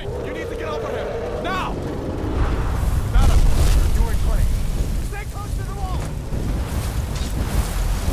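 Fire roars and crackles.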